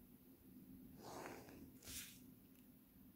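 A plastic ruler slides and rustles across paper.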